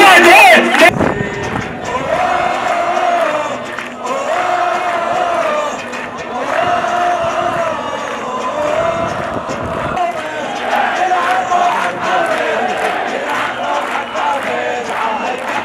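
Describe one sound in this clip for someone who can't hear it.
A man chants loudly through a loudspeaker in the open air.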